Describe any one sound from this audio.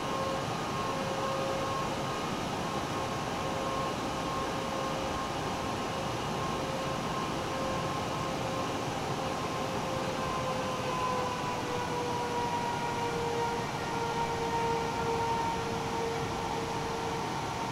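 A jet engine whines steadily as an aircraft taxis.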